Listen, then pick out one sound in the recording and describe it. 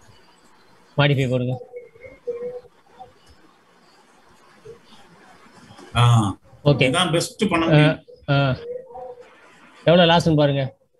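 A man speaks over an online call in short bursts.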